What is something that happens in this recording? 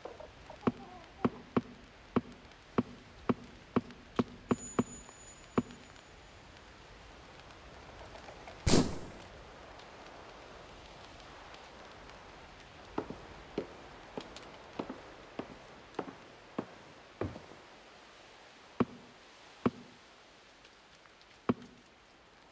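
Game menu clicks tick quickly, one after another.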